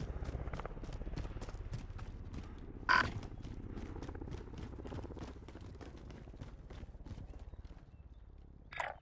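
Footsteps thud quickly and evenly over the ground.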